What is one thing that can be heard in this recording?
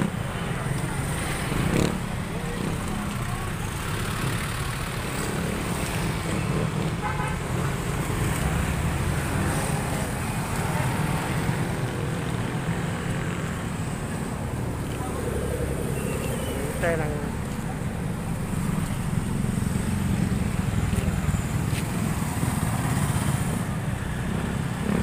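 Motorcycle engines and car traffic rumble past steadily.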